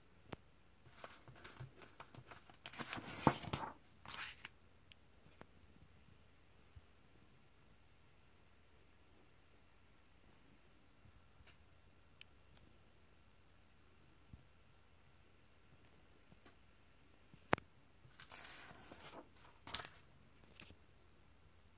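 Paper pages rustle and flip as a comic book is turned.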